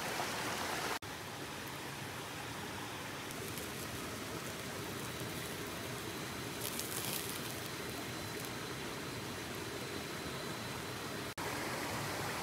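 A small fire crackles and hisses.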